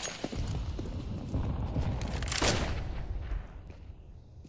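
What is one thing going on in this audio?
Footsteps thud quickly on stone.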